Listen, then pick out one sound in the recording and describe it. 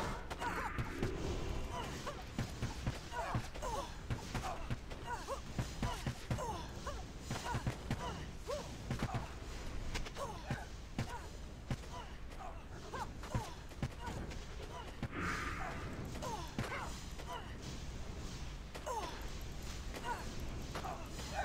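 Blades clash and strike rapidly in a fight.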